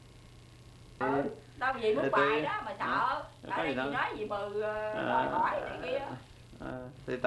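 A child speaks loudly and with animation close by.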